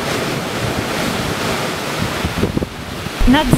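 Waves crash and churn against rocks.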